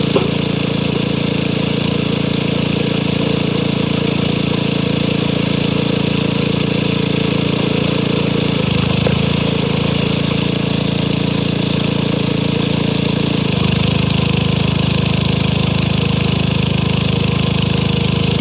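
A log splitter's engine drones steadily close by.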